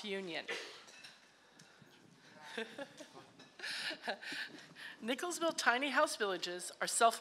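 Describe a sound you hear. A middle-aged woman speaks with emotion into a microphone, close by.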